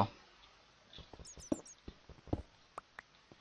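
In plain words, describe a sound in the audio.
A pickaxe chips at stone in quick knocks.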